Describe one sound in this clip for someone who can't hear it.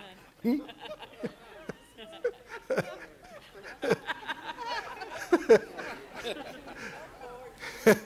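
An older man laughs softly.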